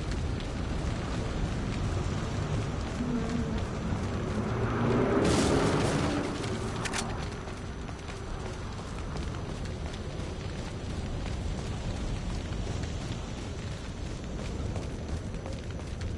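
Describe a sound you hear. Footsteps crunch on stone and gravel.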